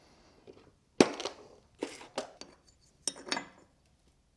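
Wooden pieces knock and click sharply as they are handled.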